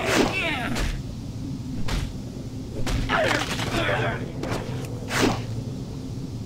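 Magic spell effects whoosh and crackle in bursts.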